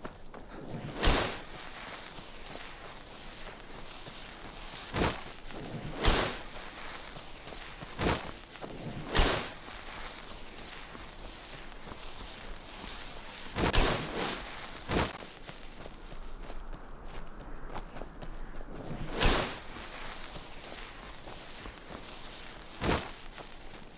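A magic spell crackles and whooshes in short, sharp bursts.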